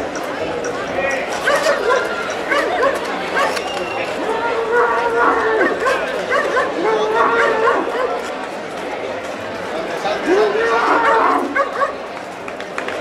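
Young men in the street shout at a bull.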